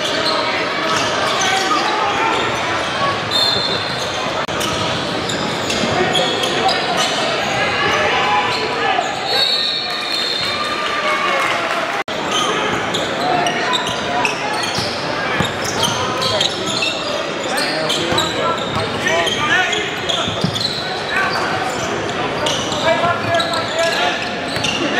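A crowd of people chatters and shouts in a large echoing gym.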